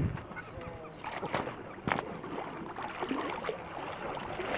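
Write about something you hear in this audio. A fish splashes in the water as a net scoops it up.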